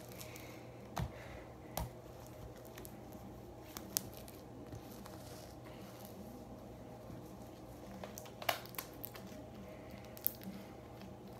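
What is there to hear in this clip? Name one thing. Small plastic objects click and tap in a girl's hands.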